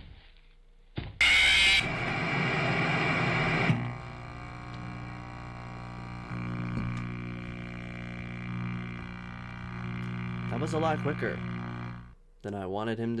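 Loud static hisses and buzzes.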